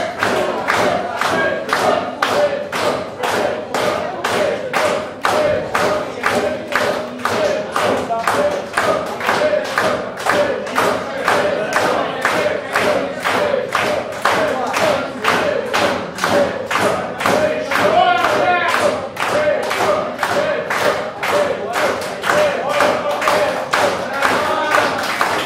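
A keyboard plays along with the band.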